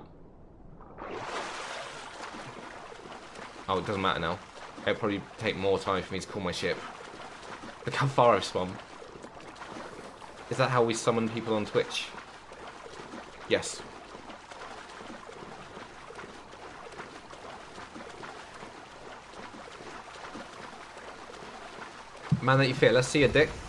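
Water splashes as a swimmer strokes through the sea.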